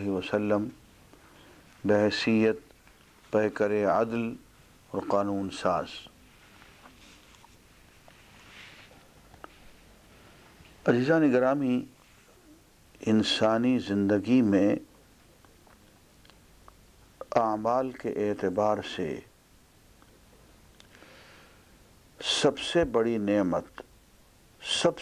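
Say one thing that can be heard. An elderly man speaks slowly and calmly into a close microphone, with long pauses.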